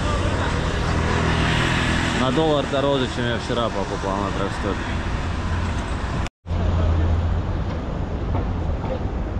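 City traffic rumbles steadily nearby, outdoors on a busy street.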